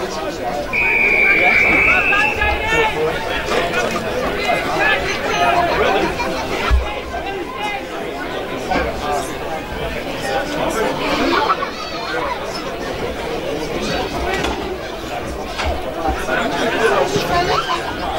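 Players and spectators shout and call out across an open field.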